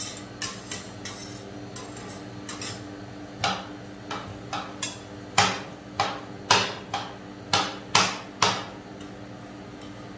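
Metal spatulas tap and scrape sharply on a metal plate.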